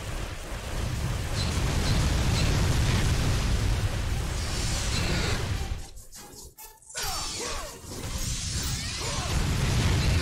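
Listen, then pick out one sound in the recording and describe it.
Flames roar and whoosh.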